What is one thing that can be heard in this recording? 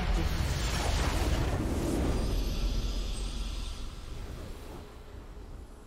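A triumphant game fanfare swells and slowly fades.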